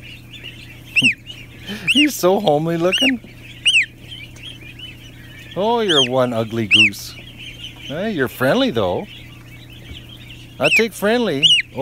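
A gosling peeps in short, high chirps close by.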